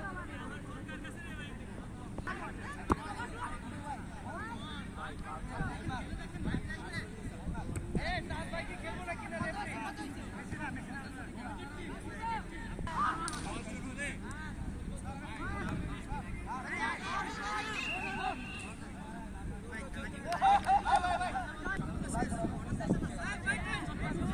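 Young men call out to each other outdoors across an open field.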